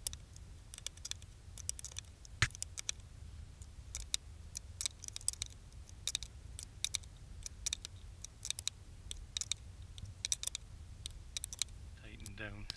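A ratchet wrench clicks rapidly as a bolt is tightened.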